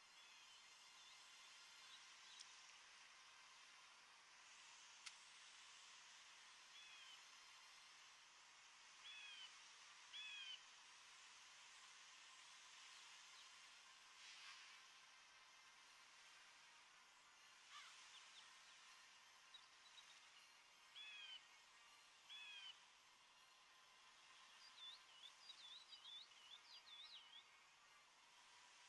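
Gentle waves lap at a shore.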